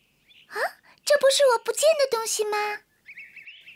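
A young girl speaks in a high, surprised voice close by.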